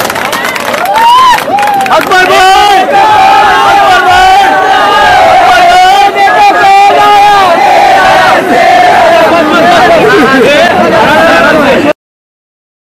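A crowd of men chants and shouts loudly in unison.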